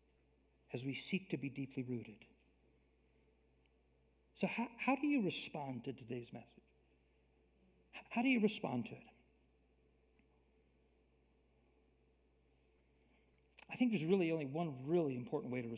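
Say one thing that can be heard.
A middle-aged man speaks through a microphone in pauses, calmly and with feeling, in a large room.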